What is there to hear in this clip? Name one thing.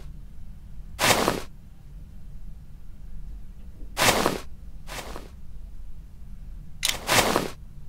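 A short electronic whoosh sounds several times as fuses snap into place and light up.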